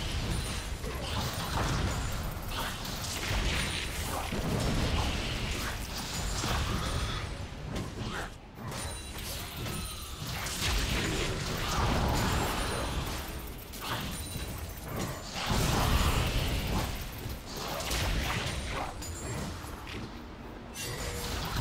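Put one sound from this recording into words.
Game spell effects crackle and whoosh in a busy fight.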